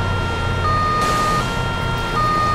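Water splashes as a car lands in it.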